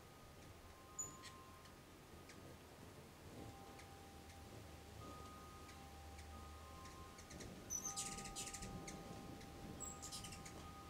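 Hummingbirds chirp in short high chitters.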